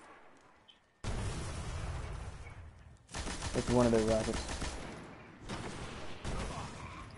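Gunfire rings out in loud bursts.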